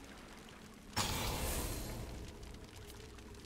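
A bright game sound effect bursts in suddenly and fades over about a second.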